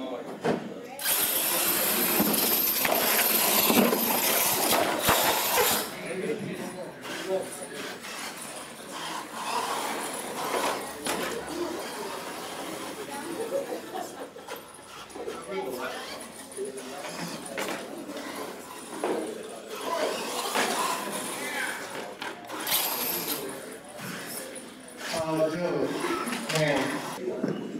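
An electric radio-controlled monster truck whirs as it drives.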